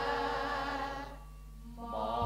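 Young women sing together into microphones.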